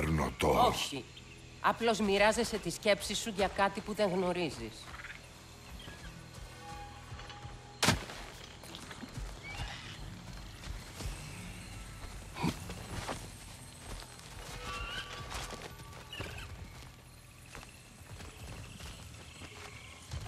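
Footsteps tread on soft forest ground.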